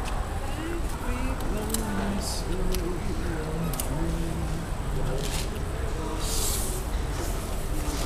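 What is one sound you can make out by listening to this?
A hand rubs and scrapes along a metal panel.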